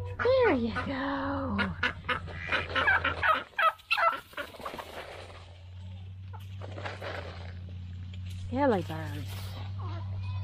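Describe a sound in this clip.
Chickens and turkeys cluck and chatter nearby.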